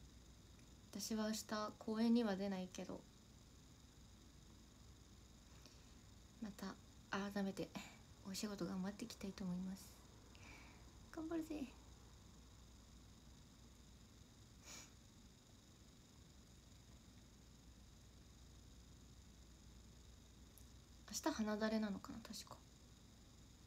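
A young woman speaks softly and casually close to a microphone, in short bursts with pauses.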